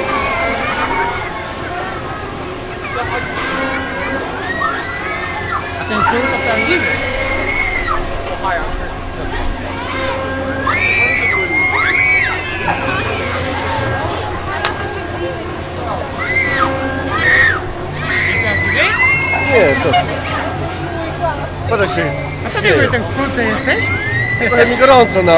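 A fairground ride's machinery rumbles and hums steadily.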